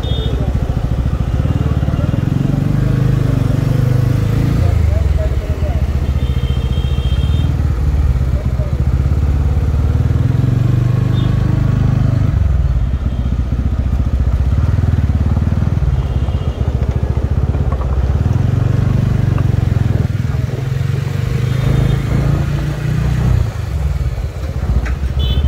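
A motorcycle engine rumbles up close, rising and falling as it speeds up and slows down.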